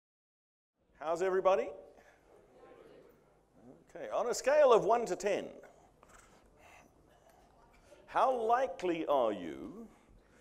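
An older man speaks calmly into a microphone, pausing between phrases.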